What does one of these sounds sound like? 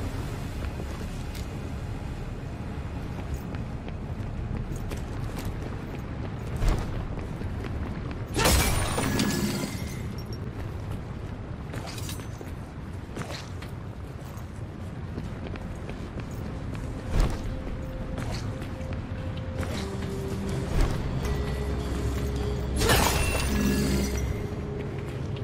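Footsteps crunch over rough ground.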